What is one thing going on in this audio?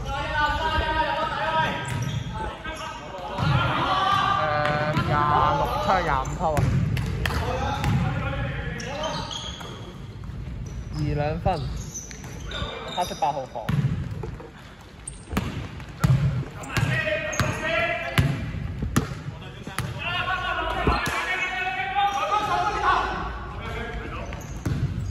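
Men shout to each other in an echoing gym.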